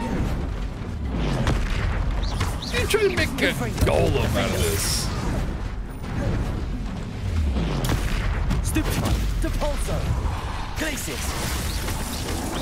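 Magic spells blast and crackle.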